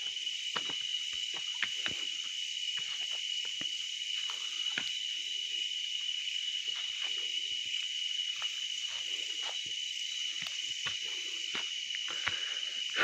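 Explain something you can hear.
Footsteps crunch through dry leaves and snap twigs.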